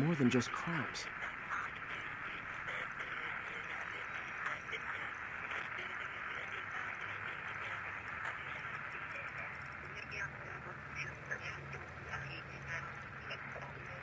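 Radio static hisses and crackles steadily.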